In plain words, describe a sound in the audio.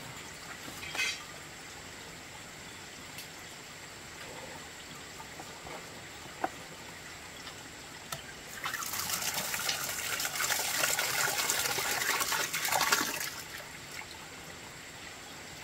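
Hands swish and rub rice in water in a metal pot.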